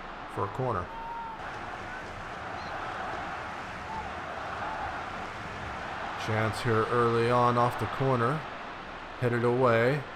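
A large crowd murmurs and cheers steadily.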